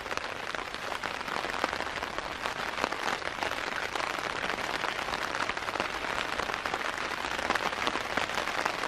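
Rain patters steadily on a tent close by.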